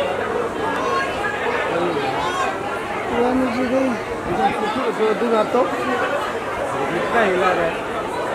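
A crowd of men and women chatter loudly all around.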